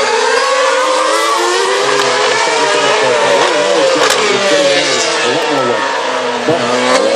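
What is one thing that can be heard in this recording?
Racing car engines scream past, changing pitch as they pass.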